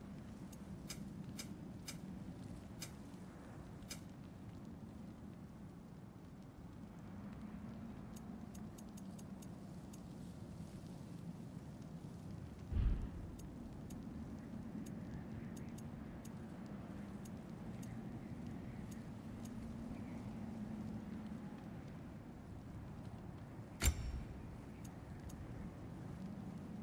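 Short soft electronic ticks sound as menu options change.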